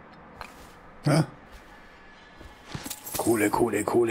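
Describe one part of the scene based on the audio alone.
A person drops down and lands with a heavy thump.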